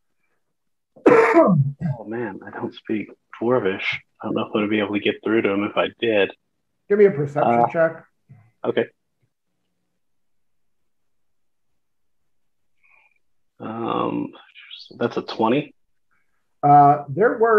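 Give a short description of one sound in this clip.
Several men talk and laugh casually over an online call.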